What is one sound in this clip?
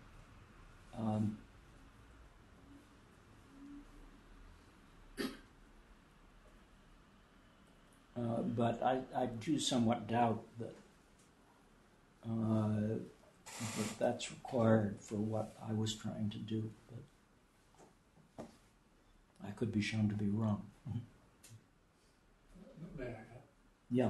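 An elderly man speaks calmly and slowly, close by, with pauses.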